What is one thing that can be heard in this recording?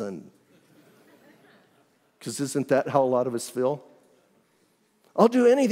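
A middle-aged man speaks with animation into a microphone, with pauses between phrases.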